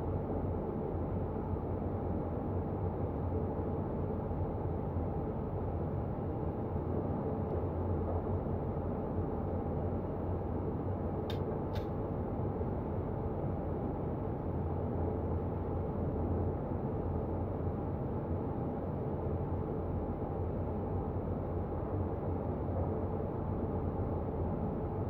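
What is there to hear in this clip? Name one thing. A train engine rumbles steadily as wheels roll over the rails.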